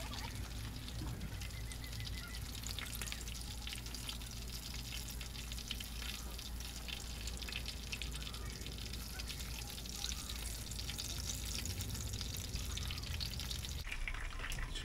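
Fish sizzles as it fries in hot oil.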